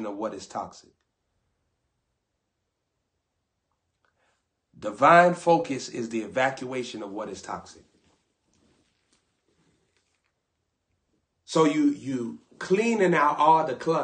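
A young man talks animatedly and close to a microphone, with pauses between phrases.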